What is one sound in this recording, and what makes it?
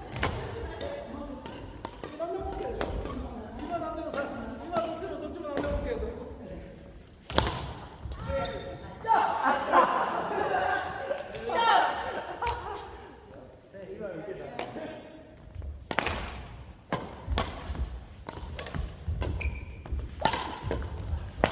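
Shoes squeak and thud on the floor.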